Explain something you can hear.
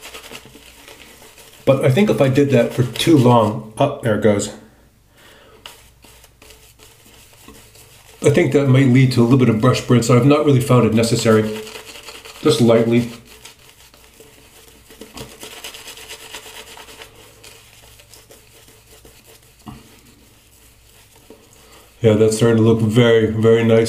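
A razor scrapes over lathered stubble.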